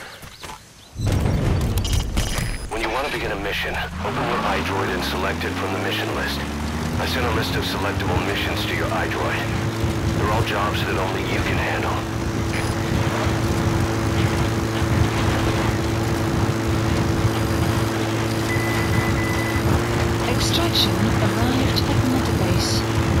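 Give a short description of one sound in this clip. A jeep engine starts and revs up, then drones steadily.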